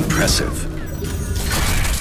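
An explosion bursts in a video game.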